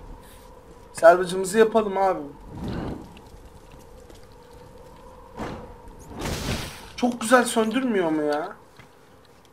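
A young woman speaks with effort, close by.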